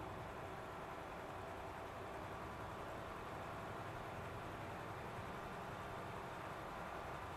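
A truck engine drones steadily as it drives along a road.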